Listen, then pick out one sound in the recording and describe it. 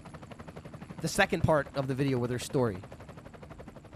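A helicopter's rotors thump loudly.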